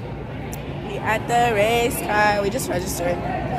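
A young woman speaks loudly and playfully close to the microphone.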